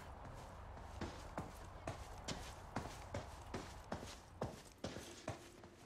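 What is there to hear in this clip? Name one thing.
Footsteps thud quickly on wooden stairs.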